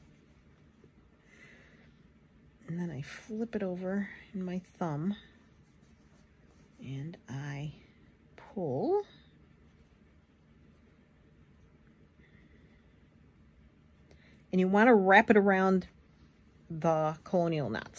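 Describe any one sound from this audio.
Thread rasps softly as it is pulled through cloth.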